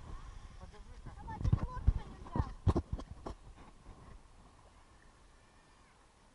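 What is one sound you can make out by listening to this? Water splashes as a man wades in shallow sea.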